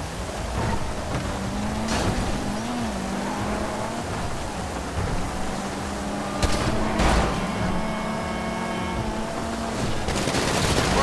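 A car engine roars as the car speeds along.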